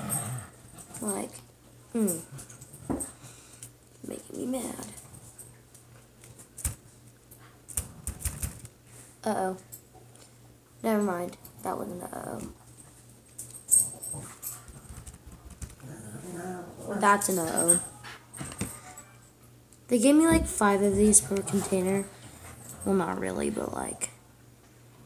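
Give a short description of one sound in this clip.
A young girl talks close by, in short bursts.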